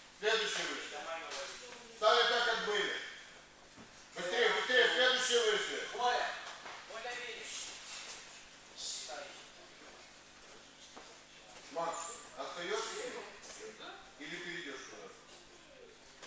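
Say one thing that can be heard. A young man speaks loudly in an echoing hall.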